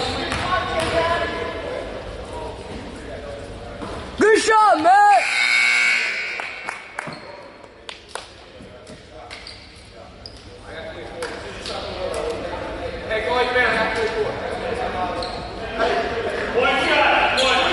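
Spectators chatter and cheer in a large echoing gym.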